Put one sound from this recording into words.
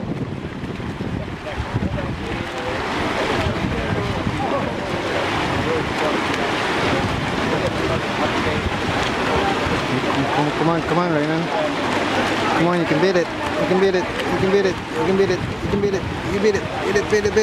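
Water splashes as a swimmer churns through the pool.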